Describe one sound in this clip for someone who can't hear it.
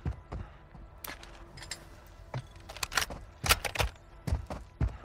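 Gear rattles and clicks as a weapon is picked up.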